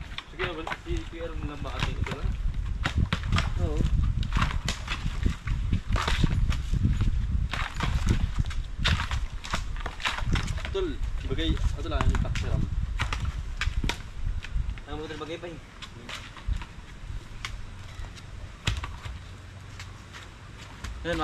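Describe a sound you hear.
Wooden poles knock and roll coconuts along the ground.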